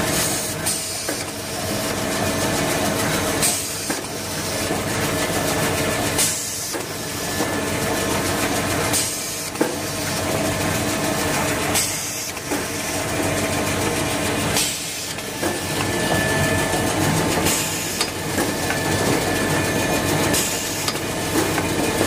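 Rolls of paper thud softly onto a moving conveyor.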